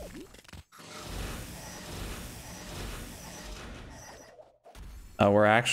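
Electric zaps crackle in a video game.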